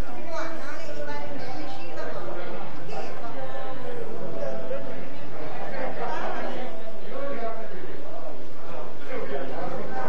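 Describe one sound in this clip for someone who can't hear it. Several adults talk quietly nearby.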